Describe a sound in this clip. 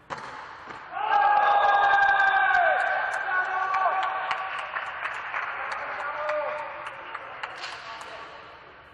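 Men shout and call out loudly across an echoing hall.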